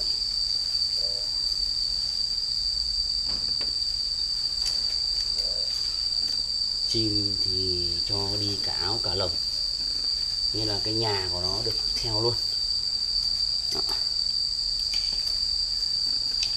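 Cloth rustles as it is pulled over a cage.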